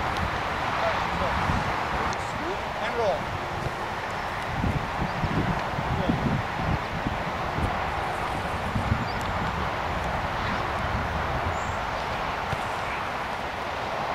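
A soccer ball is kicked with a dull thud.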